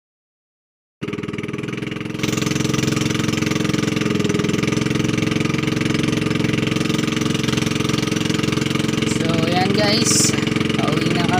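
A motorboat engine drones under way.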